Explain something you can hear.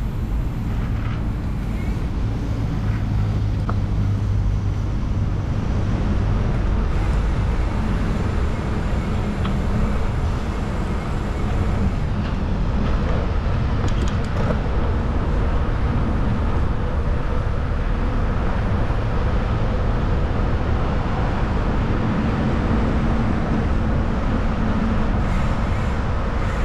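Bicycle tyres hum on pavement.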